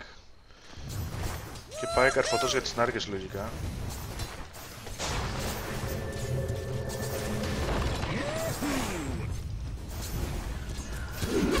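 Spell blasts and clashing strikes from a video game battle ring out.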